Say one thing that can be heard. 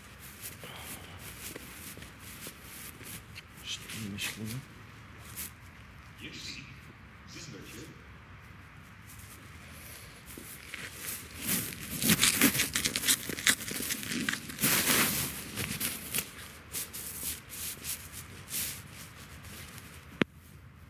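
Footsteps crunch on dry leaves and gravel outdoors.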